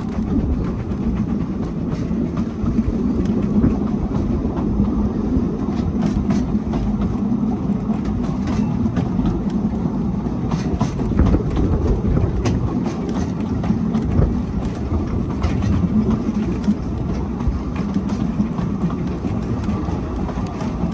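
Train wheels clatter and click over rail joints.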